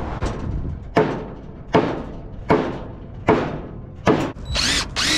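A hammer strikes wooden boards in sharp, ringing blows.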